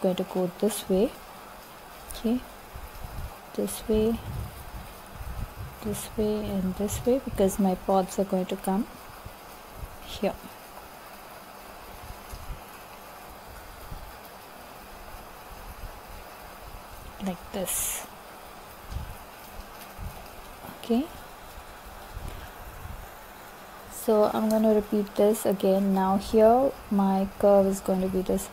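A pen scratches softly across card.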